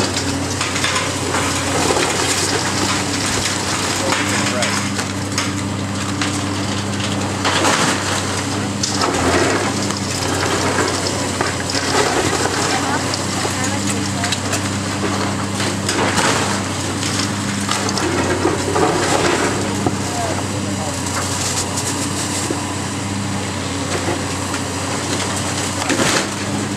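A diesel engine of a large excavator rumbles steadily.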